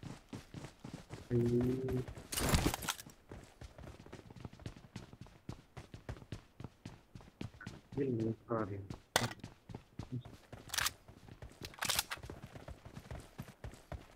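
Quick footsteps run steadily over the ground.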